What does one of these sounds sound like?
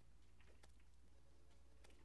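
Small fiery bursts crackle.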